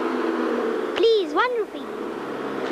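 A young girl speaks loudly and pleadingly.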